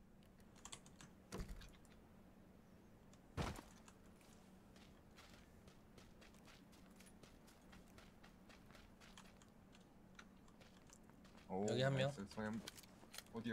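Footsteps thud on hard ground at a steady walking pace.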